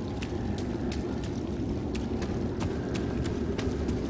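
Footsteps run quickly across a hard stone floor.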